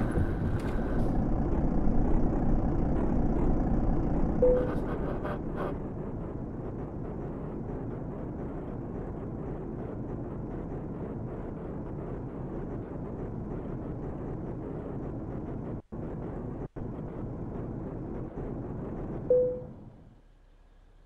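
A heavy truck engine rumbles steadily, then cuts out.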